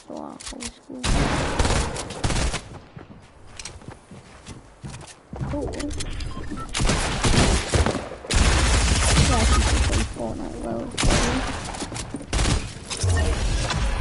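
Bursts of rapid gunfire crack out.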